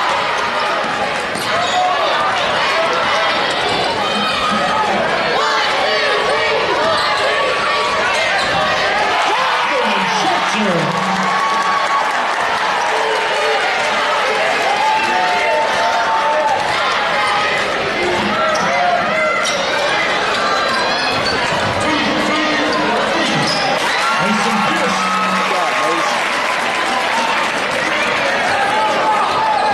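A large crowd cheers and shouts in an echoing hall.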